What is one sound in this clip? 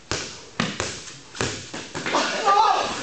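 A basketball bounces hard on a concrete floor, echoing in a large hall.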